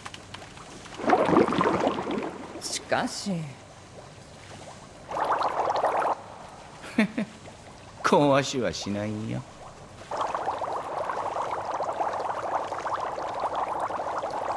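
Water bubbles and gurgles.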